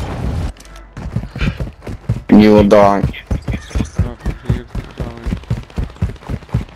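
Footsteps pound quickly on hard pavement.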